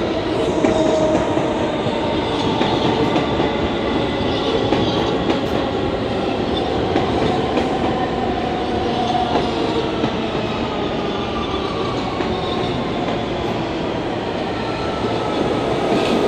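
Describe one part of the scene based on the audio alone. A subway train rumbles away along the tracks.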